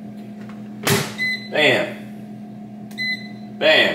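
An oven beeps a few times.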